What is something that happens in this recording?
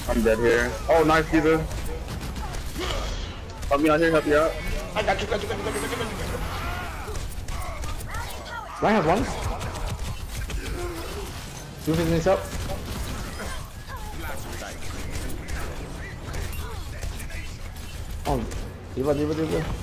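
Rapid gunfire and energy blasts crackle and thump.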